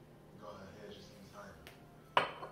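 Beer glugs as it pours from a bottle into a glass.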